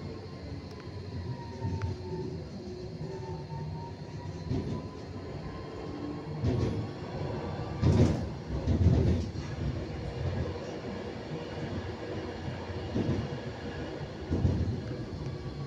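A tram rumbles steadily along the rails.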